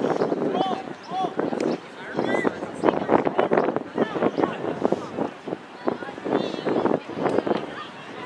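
Men and women chat and call out close by, outdoors.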